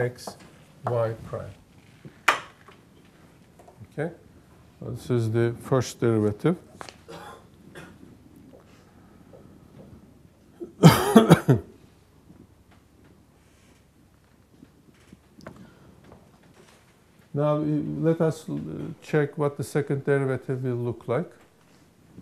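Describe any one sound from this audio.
A middle-aged man speaks calmly, with pauses.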